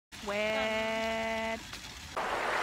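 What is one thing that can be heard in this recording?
A young woman exclaims loudly and excitedly close by.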